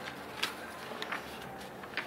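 A sheet of paper rustles and slides under a hand.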